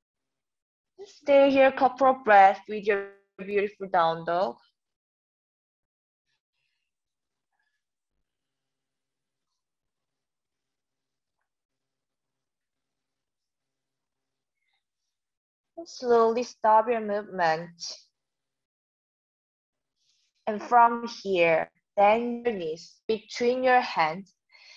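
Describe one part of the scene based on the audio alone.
A young woman speaks calmly, giving instructions in short phrases with pauses.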